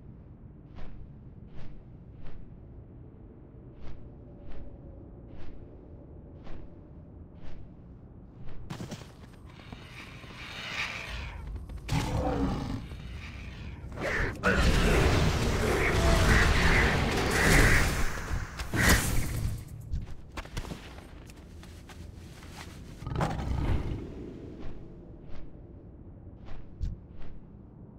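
A flying creature's wings beat in slow, even flaps.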